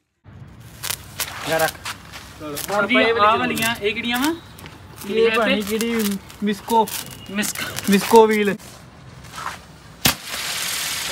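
A sparkler fizzes and crackles.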